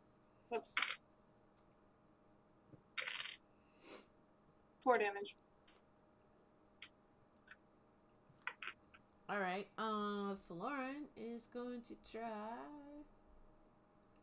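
A young woman speaks over an online call, in short bursts and with pauses.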